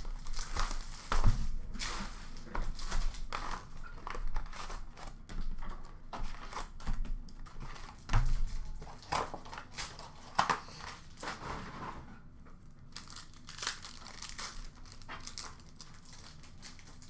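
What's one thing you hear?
Plastic wrapping and cardboard crinkle and rustle close by.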